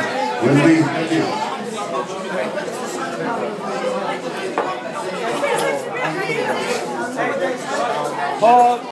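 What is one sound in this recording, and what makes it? A man shouts nearby with excitement.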